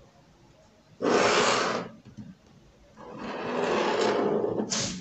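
A pen scratches lines across paper.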